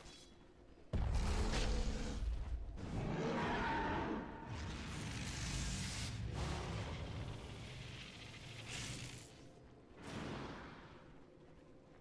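A magical spell bursts and whooshes with a roaring rush.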